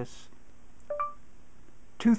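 A phone gives a short electronic beep.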